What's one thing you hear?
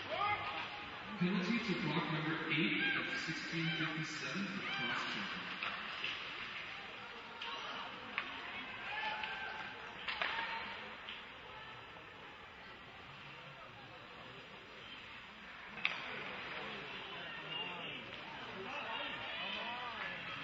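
A crowd of spectators chatters and calls out.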